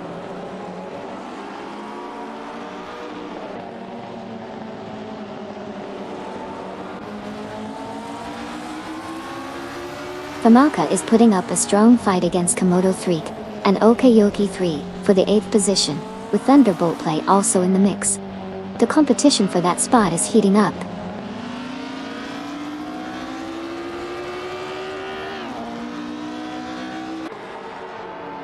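Racing car engines whine and rise and fall in pitch as the cars speed along.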